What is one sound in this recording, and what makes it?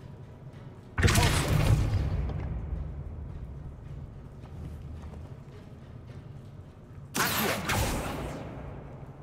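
A magic spell bursts with a loud, crackling whoosh.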